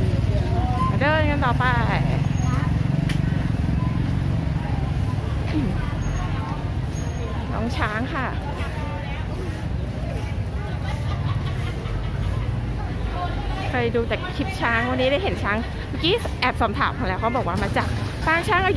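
People chatter nearby in a busy outdoor crowd.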